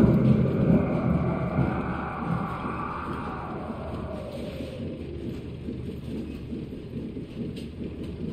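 Hands scrape and knock while climbing up a wall.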